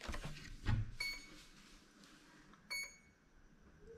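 A drone gives short electronic beeps.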